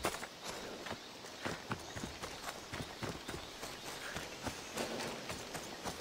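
Footsteps run through dry grass.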